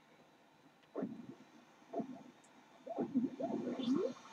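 Short game beeps count down to a start.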